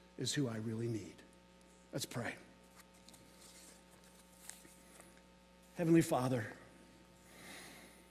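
Pages of a book rustle.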